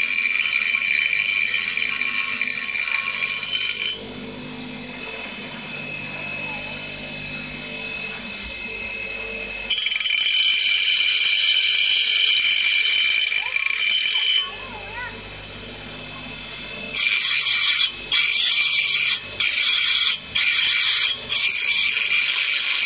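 An electric grinder motor hums steadily.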